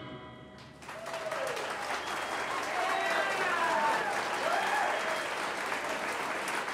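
Audience members cheer and whoop.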